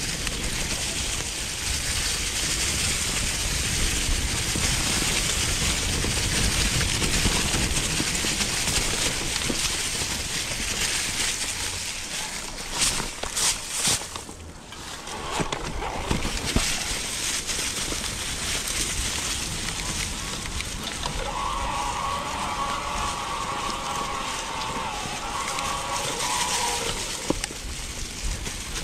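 Tyres rumble and crunch over dry leaves and dirt on a bumpy trail.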